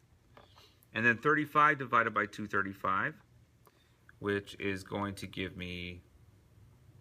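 A man speaks calmly and explains into a close microphone.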